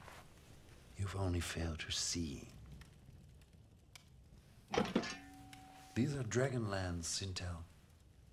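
An elderly man speaks in a deep, gruff voice close by.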